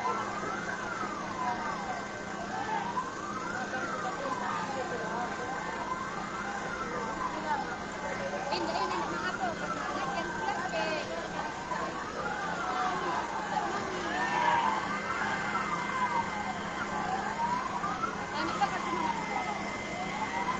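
A crowd of men shouts and talks outdoors.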